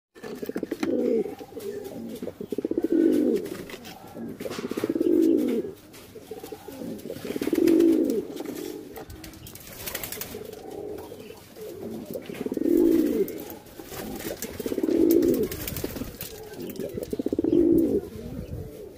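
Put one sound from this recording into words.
Pigeons coo in deep, throaty bursts, again and again, close by.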